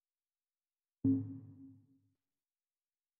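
A deep electronic whoosh swells and fades.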